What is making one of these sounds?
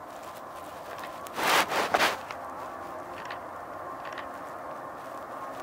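A jet airliner's engines roar steadily as it speeds down the runway and lifts off.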